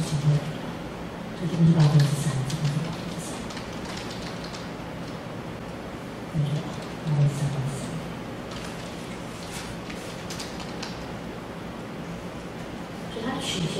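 A woman speaks through a microphone and loudspeaker, lecturing calmly in a room with some echo.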